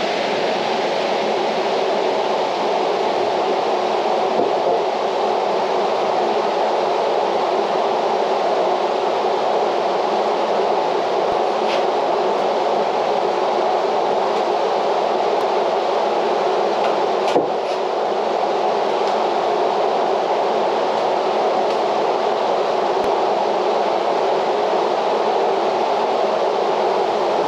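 An electric fan whirs steadily nearby.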